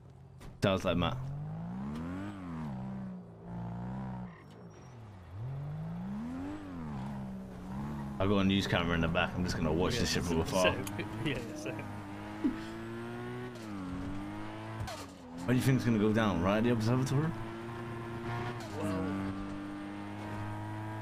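A sports car engine revs and roars as the car accelerates and shifts gears.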